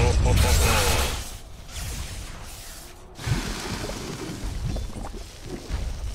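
Game spells and attacks clash and crackle in a fight.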